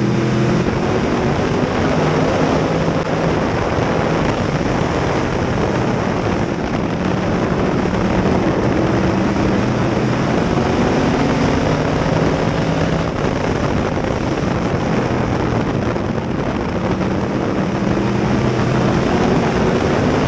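Other race car engines roar close by.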